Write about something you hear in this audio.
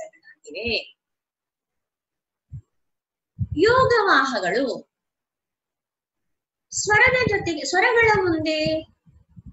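A woman speaks calmly and clearly into a microphone, pausing between phrases.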